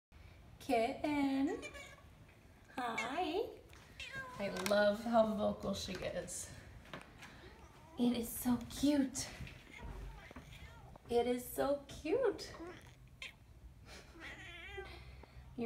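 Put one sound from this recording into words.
A cat meows repeatedly nearby.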